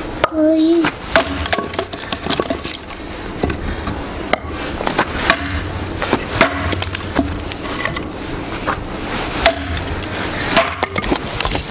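An axe splits firewood with sharp knocks.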